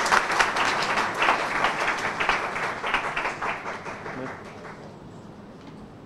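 A group of people claps, then the clapping fades out.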